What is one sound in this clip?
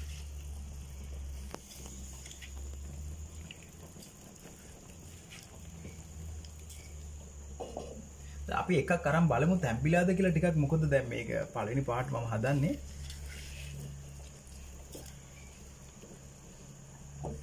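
A wooden ladle stirs and scrapes inside a clay pot.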